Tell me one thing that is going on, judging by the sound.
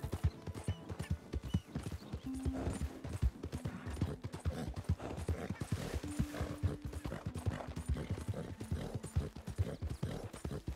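Horse hooves thud rapidly on grass and dirt at a gallop.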